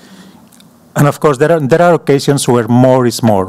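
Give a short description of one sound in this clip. A man speaks calmly into a microphone in a large hall.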